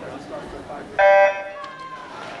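A starting horn beeps once, sharp and short.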